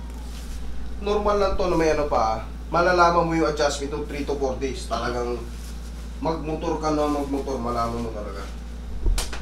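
A man talks nearby with animation.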